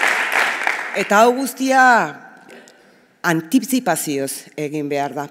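A woman speaks into a microphone through loudspeakers.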